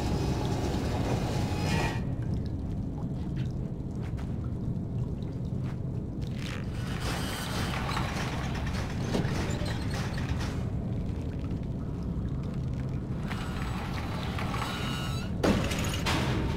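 A wooden crate scrapes across a hard floor.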